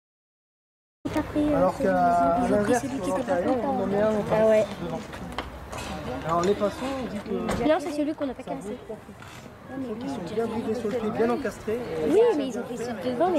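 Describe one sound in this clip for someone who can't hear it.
A woman talks nearby outdoors.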